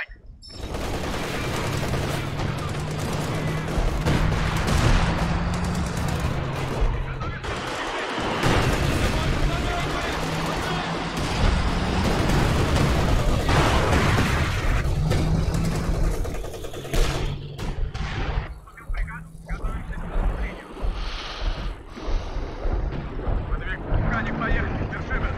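Explosions and gunfire rumble loudly.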